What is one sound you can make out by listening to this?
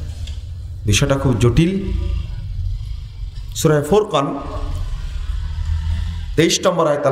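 A man speaks with animation into a microphone over a loudspeaker.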